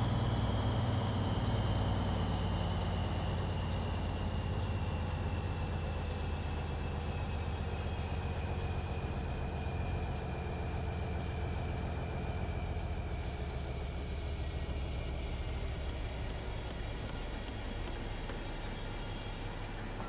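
A truck's diesel engine rumbles steadily and slowly eases off.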